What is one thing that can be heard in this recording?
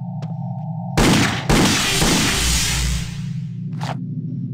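A pistol fires two loud shots that ring out and fade.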